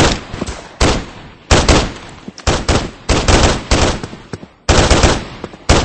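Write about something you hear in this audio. A rifle fires in rapid bursts of loud, echoing shots.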